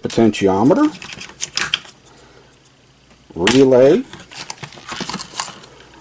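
Small plastic parts click and rattle against a plastic case.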